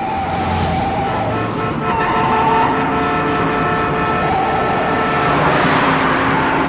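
Other cars rush past close by.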